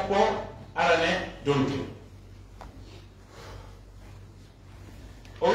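An elderly man reads out loudly into a microphone in an echoing room.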